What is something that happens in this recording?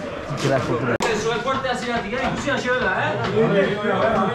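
A man speaks loudly to a group of young men.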